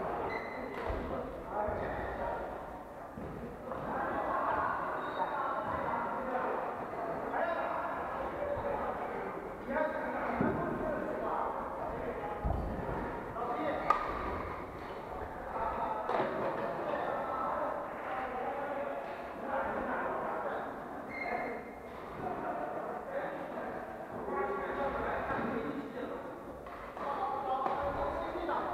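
Badminton rackets strike shuttlecocks with light pops in a large echoing hall.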